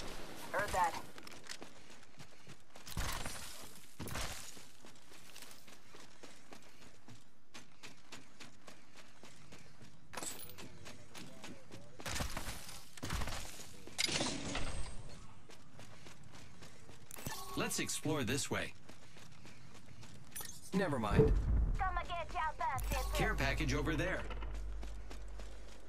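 Footsteps run quickly over hard ground and metal.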